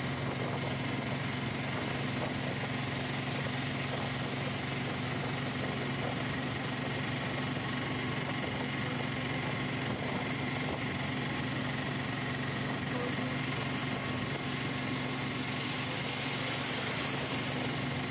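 A vehicle drones steadily as it drives along.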